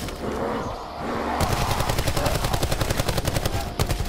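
Zombies groan and snarl close by.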